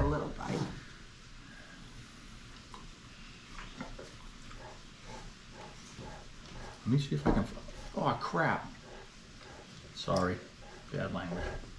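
A spoon scrapes in a container of ice cream.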